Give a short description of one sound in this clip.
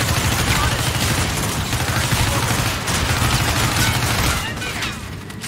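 Rapid automatic gunfire rattles loudly.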